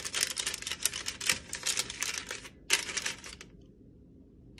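Paper liner crinkles and rustles as a hand presses it into a basket.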